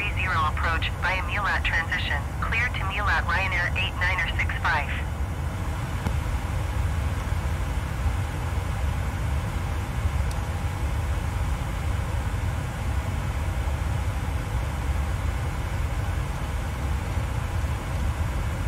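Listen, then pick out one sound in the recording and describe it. A jet's engines hum low and steady.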